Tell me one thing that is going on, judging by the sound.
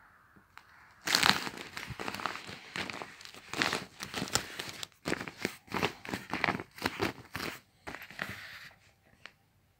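A hand squeaks and scrapes as it rubs across taut plastic.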